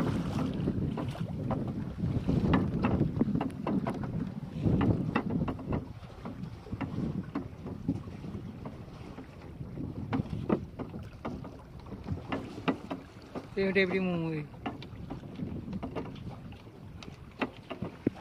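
Small waves slap and splash against a boat's hull.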